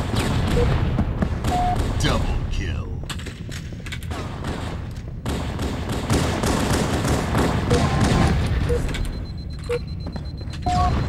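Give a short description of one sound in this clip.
Gunfire and explosions crack and boom in a video game.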